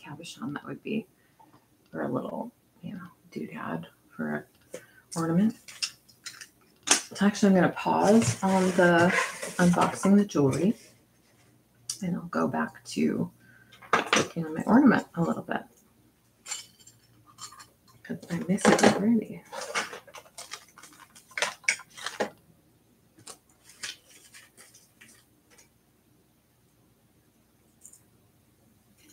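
Small beads and metal pieces clink softly.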